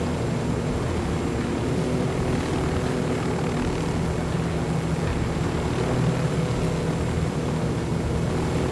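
A helicopter's rotor thumps and its engine whines steadily close by.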